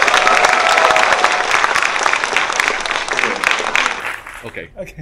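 A crowd applauds loudly in a hall.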